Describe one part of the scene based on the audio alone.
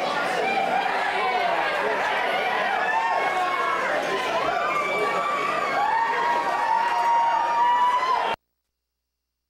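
A large crowd chatters and shouts in an echoing hall.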